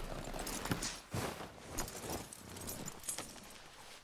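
A man drops heavily into the snow.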